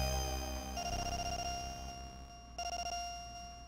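Electronic game beeps chime rapidly as a score tallies up.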